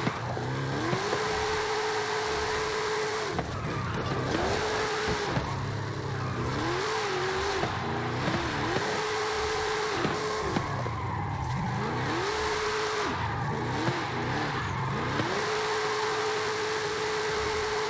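A car engine revs high and drops repeatedly as the car drifts.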